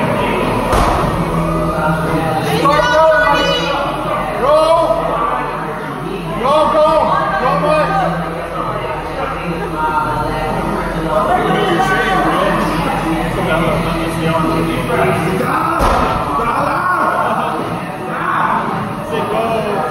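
Rowing machines whir steadily in a large echoing room.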